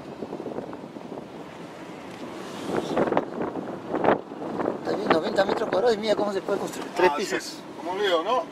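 A car drives along a road with a steady hum of tyres and engine.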